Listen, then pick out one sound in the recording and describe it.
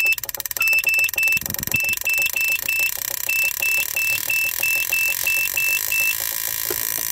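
An electronic tester beeps in short rapid pulses.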